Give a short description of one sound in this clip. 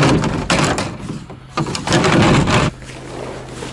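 Plastic pipes clatter against each other.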